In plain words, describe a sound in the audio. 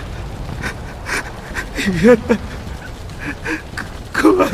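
A young man cries out in fear, close by.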